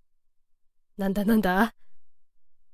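A young woman speaks briefly and brightly into a microphone.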